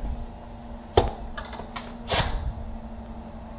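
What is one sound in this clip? Metal tools clank and knock against a car engine.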